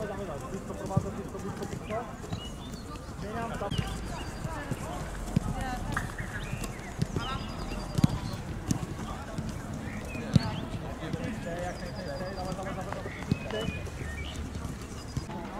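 A ball is kicked on artificial turf.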